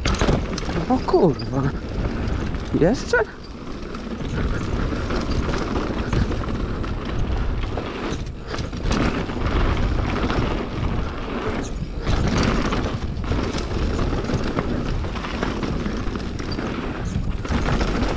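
Bike tyres crunch and rumble over a dirt trail.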